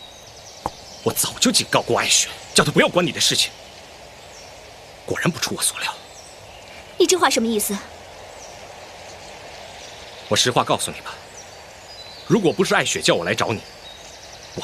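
A young man speaks sharply and angrily, close by.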